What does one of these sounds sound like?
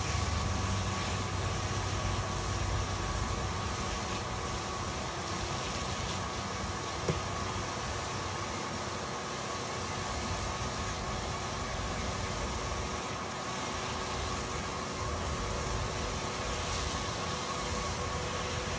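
Water sprays from a hose and splashes steadily into a metal bowl.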